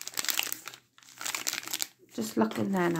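Plastic wrappers crinkle and rustle in hands.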